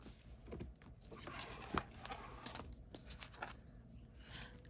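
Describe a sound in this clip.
Paper pages rustle as a planner is moved.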